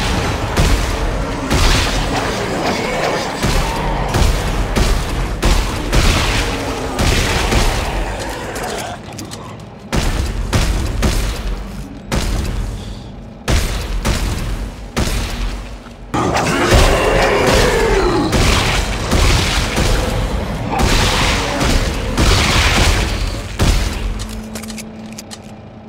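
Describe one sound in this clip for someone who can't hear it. Monstrous creatures shriek and snarl nearby.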